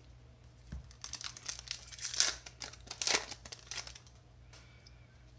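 A foil wrapper crinkles and tears as it is torn open.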